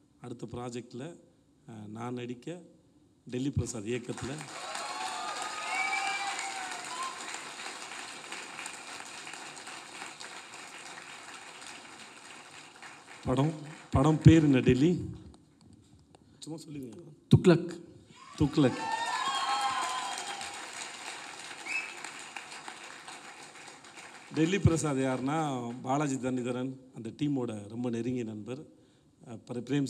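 A man speaks into a microphone, heard over loudspeakers in a large hall.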